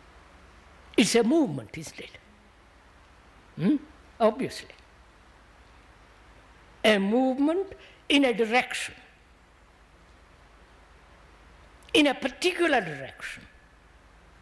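An elderly man speaks slowly and calmly into a nearby microphone, with long pauses.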